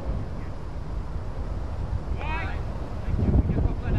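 A cricket bat knocks a ball.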